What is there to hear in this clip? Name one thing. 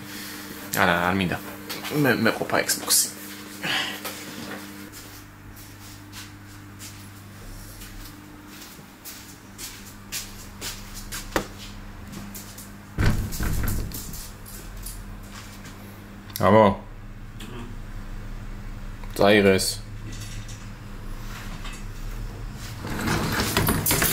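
A plastic casing knocks and rattles as it is handled.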